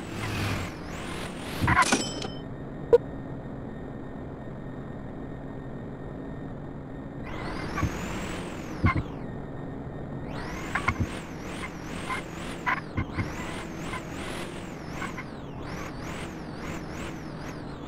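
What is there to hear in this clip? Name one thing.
A small car engine hums steadily.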